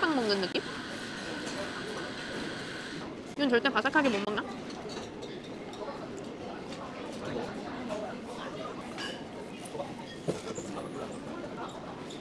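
A young woman chews crunchy bread.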